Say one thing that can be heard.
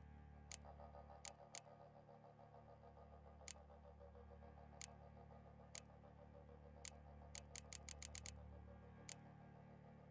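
Short soft clicks tick one after another at an uneven pace.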